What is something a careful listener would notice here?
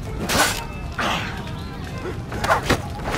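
Swords clash and swish in a fight.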